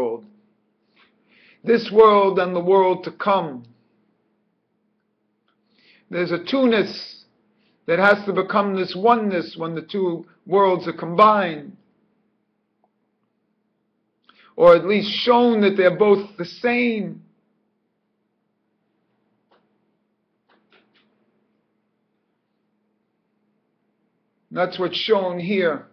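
A middle-aged man speaks calmly into a microphone close by, in short bursts with pauses.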